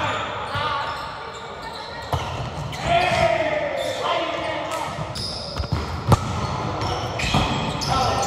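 Young players call out to each other in an echoing hall.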